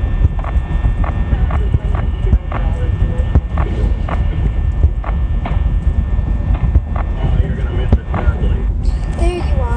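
A young woman speaks quietly close to a microphone.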